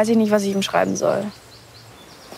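A teenage girl speaks softly and hesitantly, close by.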